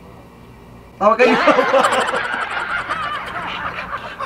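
A young man laughs loudly and heartily nearby.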